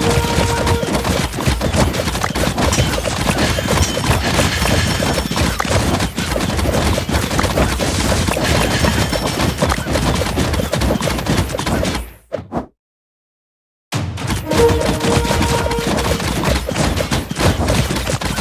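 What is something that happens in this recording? Cartoonish battle sound effects clash and pop rapidly.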